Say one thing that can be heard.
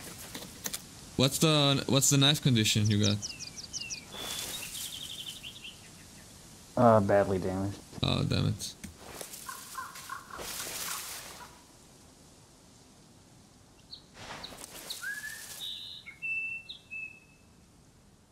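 Footsteps crunch on snow.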